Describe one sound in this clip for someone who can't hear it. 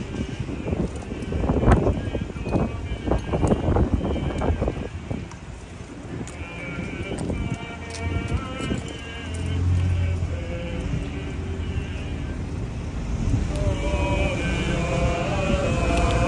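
A group of men and boys sing together outdoors as they walk.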